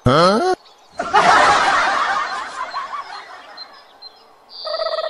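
A horse whinnies with a loud, laughing neigh.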